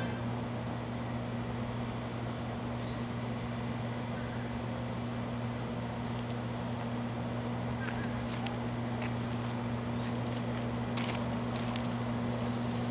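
A diesel locomotive engine rumbles steadily in the distance.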